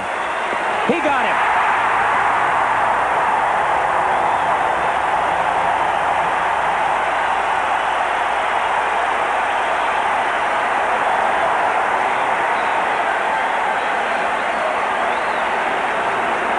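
A large crowd cheers and roars loudly in a big stadium.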